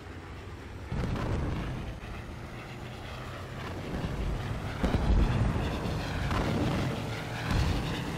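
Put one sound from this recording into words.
Anti-aircraft shells burst with dull booms in the sky.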